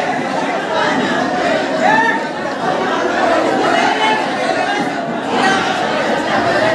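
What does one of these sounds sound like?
A crowd of men shout and argue loudly and chaotically.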